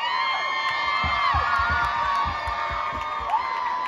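Boots stomp on a wooden floor in rhythm.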